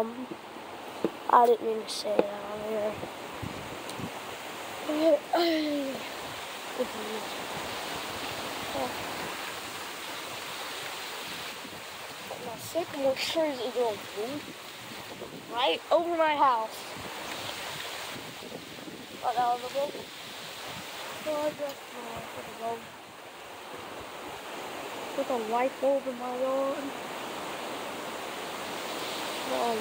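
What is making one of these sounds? Wind gusts through trees and leaves rustle outdoors.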